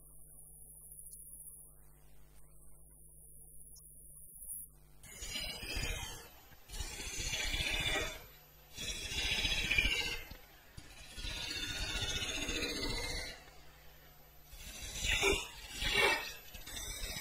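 A wood lathe motor hums.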